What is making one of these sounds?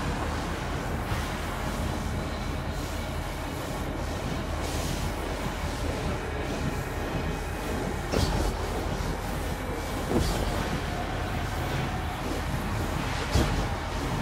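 Footsteps tread over rough ground.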